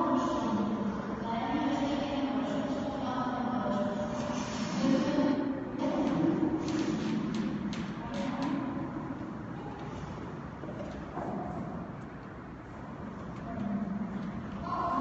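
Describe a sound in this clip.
A woman sings in a large echoing hall.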